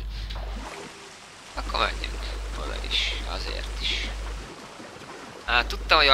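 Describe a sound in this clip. Water sloshes as a body swims and wades.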